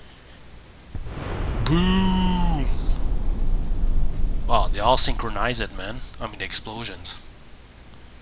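Loud explosions boom and roar in a burst of fire.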